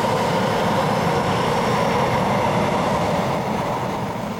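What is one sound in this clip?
Train wheels squeal on the rails.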